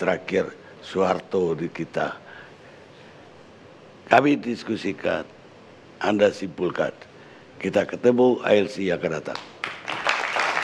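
An older man speaks forcefully into a microphone.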